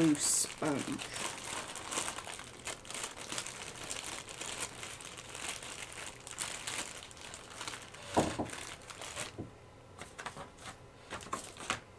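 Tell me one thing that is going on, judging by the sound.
A plastic bag crinkles and rustles in a hand.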